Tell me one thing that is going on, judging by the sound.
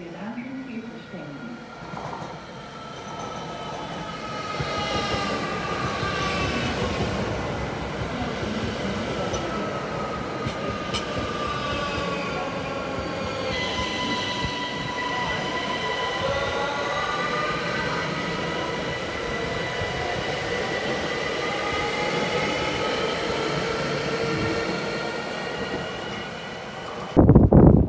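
An electric train rolls slowly past close by, its motors whining in gliding tones that fall and rise.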